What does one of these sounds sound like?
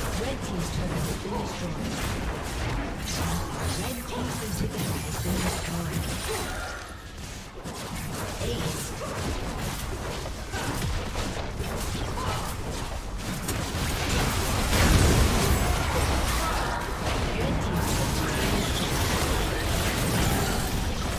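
Game sound effects of spells and attacks clash and crackle.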